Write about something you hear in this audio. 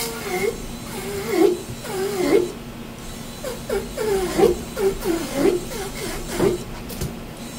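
A metal scaler scrapes the scales off a fish in quick, repeated strokes.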